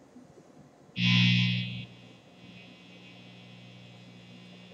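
An amplifier gives a loud hum that drops to a low steady buzz.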